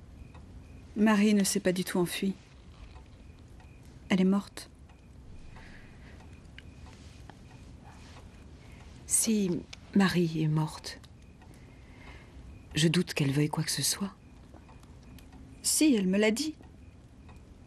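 A young woman speaks quietly and hesitantly, close by.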